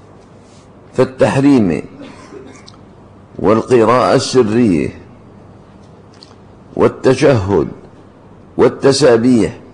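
An elderly man reads aloud slowly into a microphone, in short phrases with pauses.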